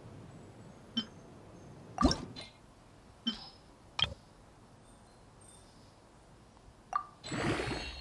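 Short menu clicks tap one after another.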